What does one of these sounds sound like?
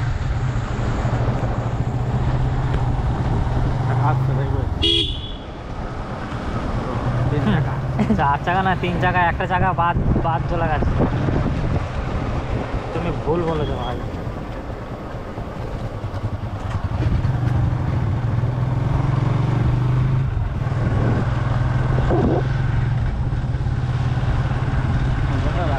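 A motorcycle engine hums steadily, rising and falling as the bike rides along.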